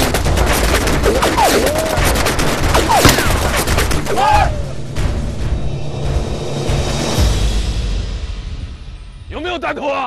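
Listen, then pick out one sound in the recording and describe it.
Rifles fire in rapid, overlapping bursts.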